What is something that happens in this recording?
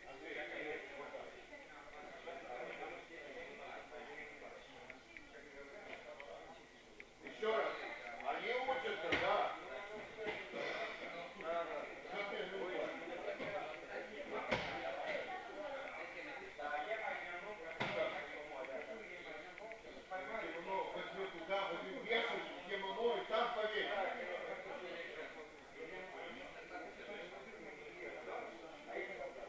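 Young men talk and call out in an echoing hall.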